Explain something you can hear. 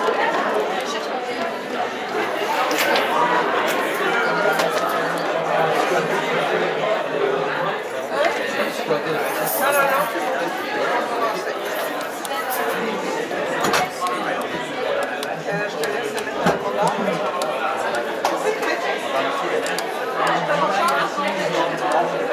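A crowd of teenagers chatters loudly.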